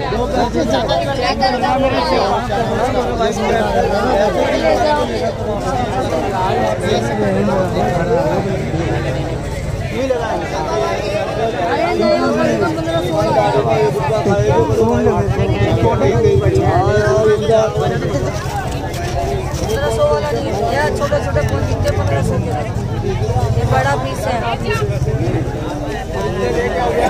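Several men talk close by over a murmuring outdoor crowd.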